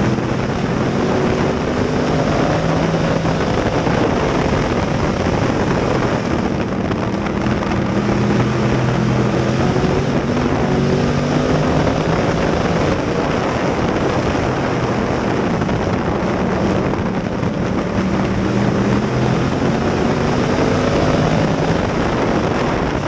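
A race car engine roars loudly close by, its pitch rising and falling as it revs through the turns.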